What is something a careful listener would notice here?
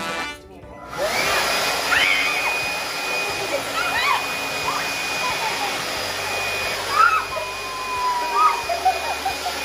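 A leaf blower whirs steadily close by.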